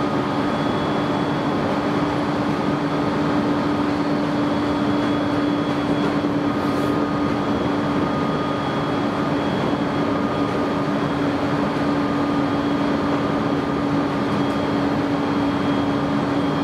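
An electric train runs at speed, its steady rumble and hum heard from inside a carriage.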